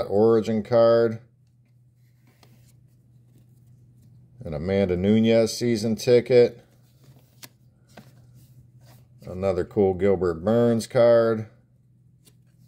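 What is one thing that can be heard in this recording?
Trading cards slide and flick against each other in the hands.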